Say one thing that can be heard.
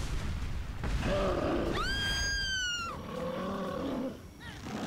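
A giant creature roars loudly.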